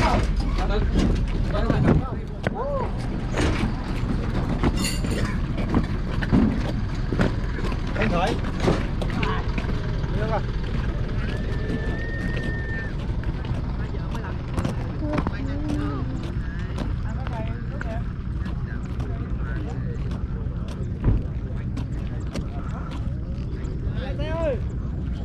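Men talk nearby in casual voices.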